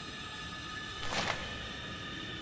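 Paper rustles as a letter is picked up.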